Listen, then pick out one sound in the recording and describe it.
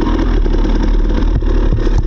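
A dirt bike splashes through a muddy puddle.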